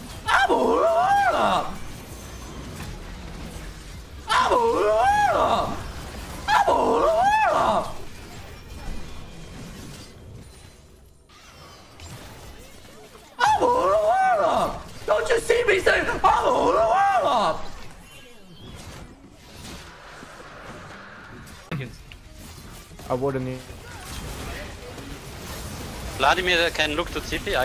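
Game fight sounds clash and zap.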